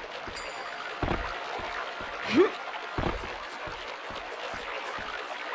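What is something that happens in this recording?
Footsteps thud at a steady pace.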